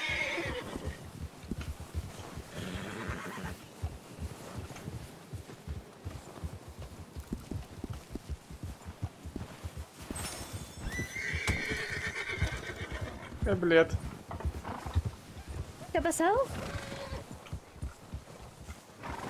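Horse hooves thud steadily through snow.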